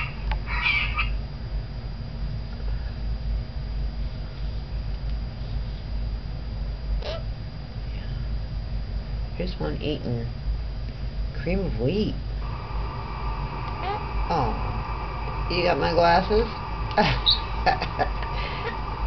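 A parrot chatters and squawks close by.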